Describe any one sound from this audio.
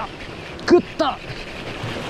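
A fishing reel whirs as its handle is wound.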